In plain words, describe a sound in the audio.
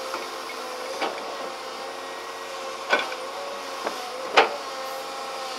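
Metal clanks sharply as an excavator bucket knocks and scrapes.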